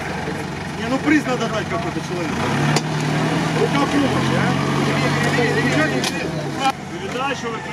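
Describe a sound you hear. A car engine revs loudly and labours through mud.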